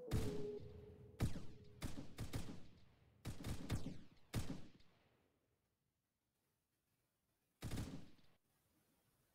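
Loud rifle shots bang in quick succession and echo away.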